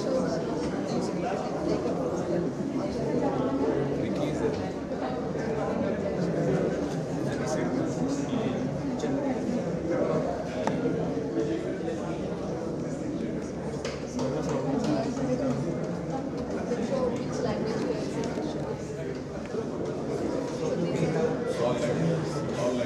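A man explains calmly, close by.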